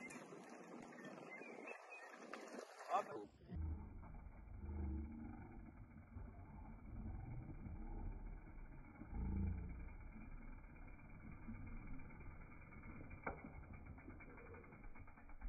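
Bicycle tyres crunch and roll over a dirt trail, coming closer.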